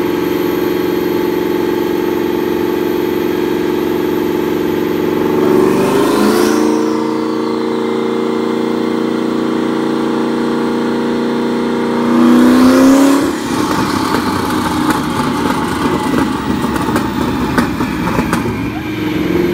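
A car engine idles loudly and revs up in an enclosed room.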